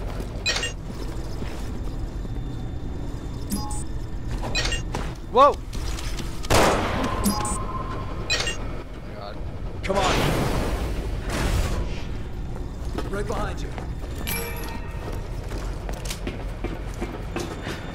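Footsteps thud on a hard metal floor.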